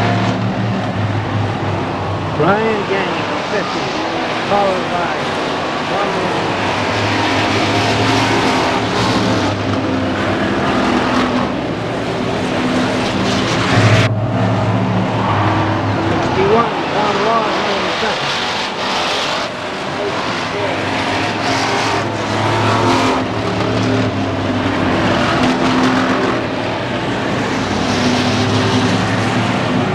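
Racing car engines roar loudly around a track.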